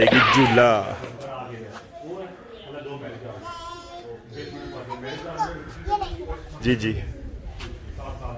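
A young girl chatters nearby.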